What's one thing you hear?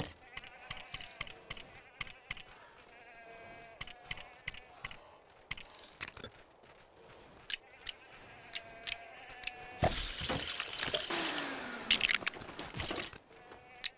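Short game menu clicks tick one after another.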